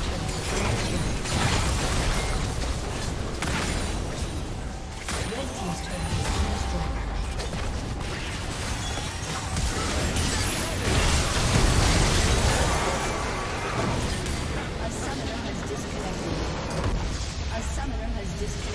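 Game spell effects and attacks crash and zap in a busy fight.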